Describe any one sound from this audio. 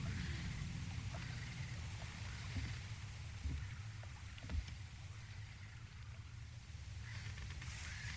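A low steady rumble of wind runs throughout.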